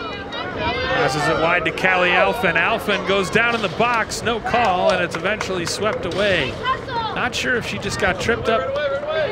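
A crowd cheers loudly and excitedly.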